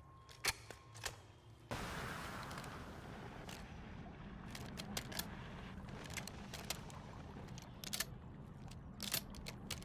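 A gun's metal parts click and rattle as it is handled.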